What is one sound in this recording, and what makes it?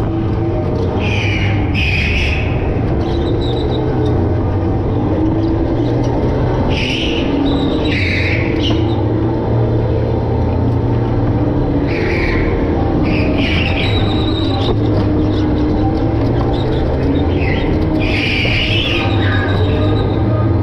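Go-kart tyres squeal through the turns.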